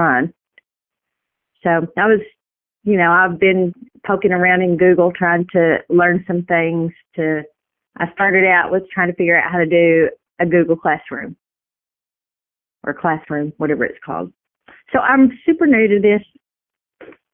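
A man speaks calmly over a phone line in an online call.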